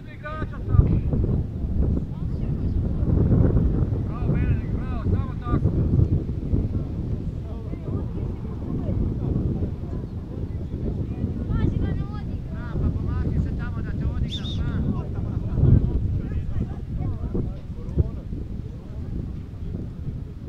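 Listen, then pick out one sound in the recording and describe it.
Wind blows hard across the microphone outdoors.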